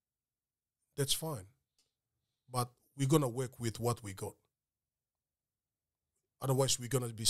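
A man speaks calmly and closely into a microphone, in short bursts with pauses.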